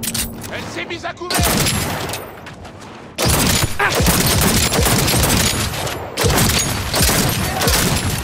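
A pistol fires several loud shots in quick bursts.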